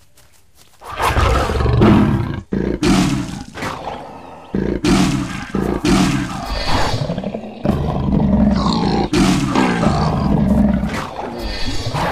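A tiger snarls and roars as it attacks.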